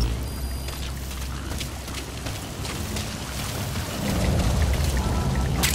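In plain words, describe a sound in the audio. Footsteps hurry over dirt.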